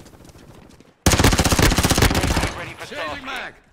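A rifle fires a rapid burst of loud gunshots.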